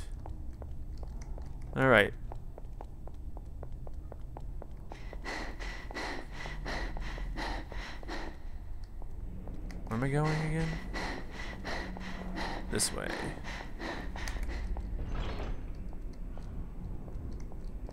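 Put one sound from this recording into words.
Footsteps walk steadily on a hard floor.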